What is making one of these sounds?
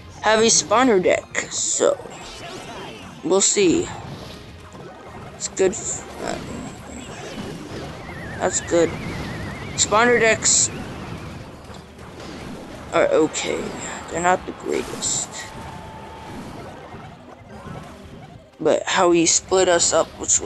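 Cartoonish battle sound effects clash, crackle and burst.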